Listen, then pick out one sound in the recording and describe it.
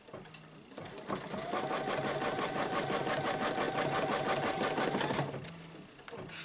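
An embroidery machine stitches with a fast, steady whirring hum.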